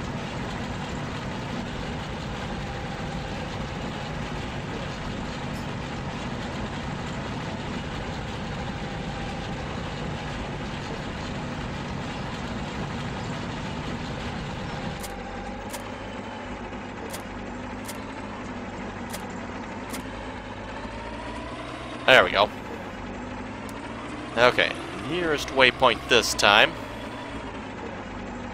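A tractor engine hums steadily and rises in pitch as the machine moves off.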